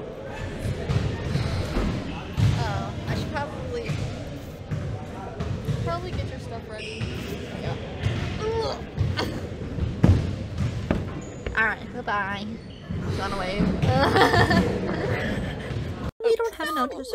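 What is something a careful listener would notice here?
A teenage girl talks with animation close to the microphone.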